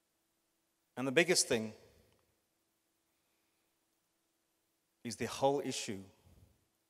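A middle-aged man speaks calmly through a microphone, with long pauses.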